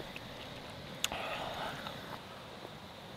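A young woman sips a drink.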